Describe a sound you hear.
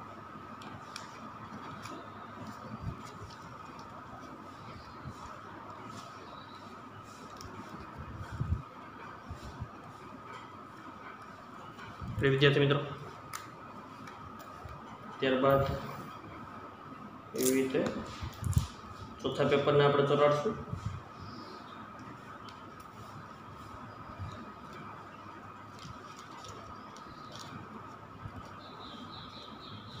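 Paper crinkles and rustles softly as it is folded.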